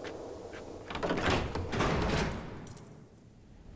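A wooden shutter slams shut with a thud.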